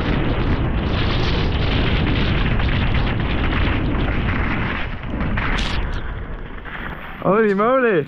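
Bike tyres rumble fast over a bumpy dirt trail.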